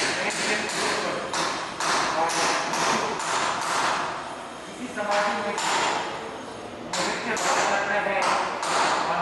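A man chants rhythmically into a microphone, heard through a loudspeaker.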